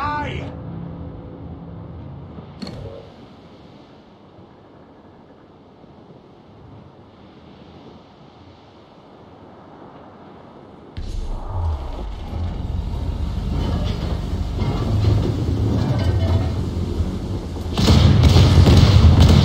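Waves wash and surge around a sailing ship at sea.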